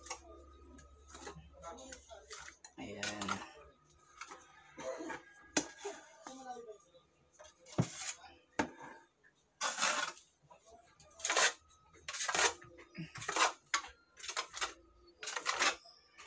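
A scraper scrapes in rough strokes across a wall.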